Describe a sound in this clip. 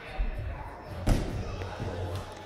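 A climber drops onto a padded mat with a dull thud.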